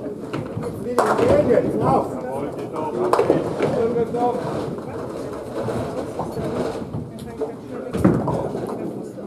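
Pins clatter and crash as balls strike them.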